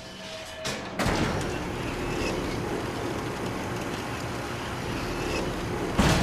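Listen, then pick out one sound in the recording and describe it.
A lift motor hums steadily.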